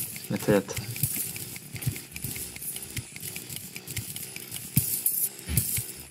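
A pickaxe chips at stone blocks again and again in quick, clicking hits.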